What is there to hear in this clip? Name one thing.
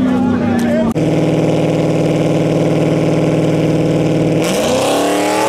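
A turbocharged V8 drag car idles roughly at the start line.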